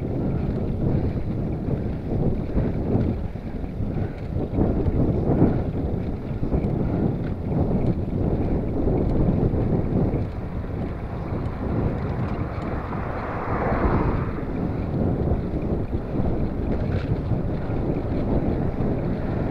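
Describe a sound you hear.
Bicycle tyres roll steadily on tarmac.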